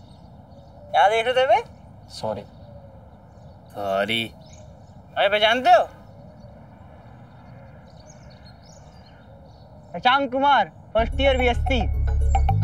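A young man talks casually to another young man nearby.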